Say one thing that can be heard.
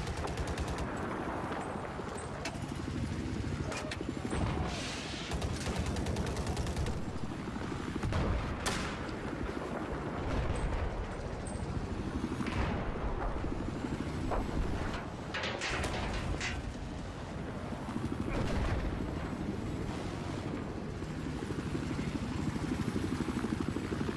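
Helicopter rotors thump steadily and loudly.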